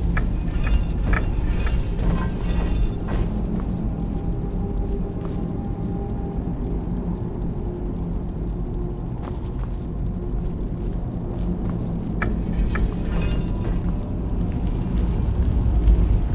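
A low, steady rumbling drone goes on.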